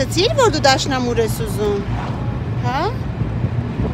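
A young girl speaks softly close by.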